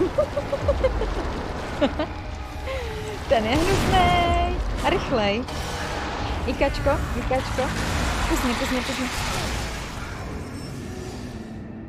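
A monster roars and growls loudly.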